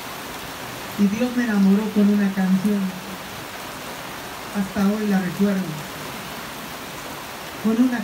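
A young man speaks with animation into a microphone, heard through a loudspeaker.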